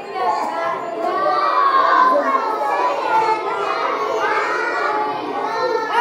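Young children clap their hands.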